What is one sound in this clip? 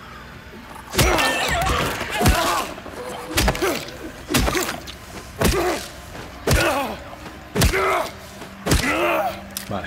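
A metal pipe strikes a body again and again with heavy thuds.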